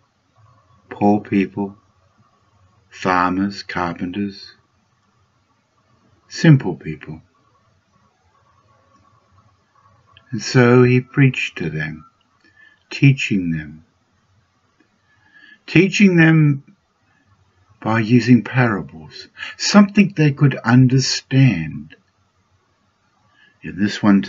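An elderly man speaks calmly in phrases with pauses, heard through a microphone on an online call.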